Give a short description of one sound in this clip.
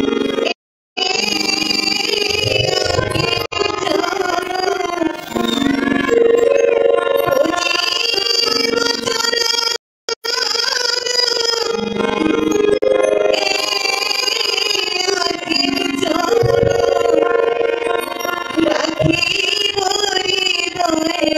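A harmonium plays sustained chords beneath the singing.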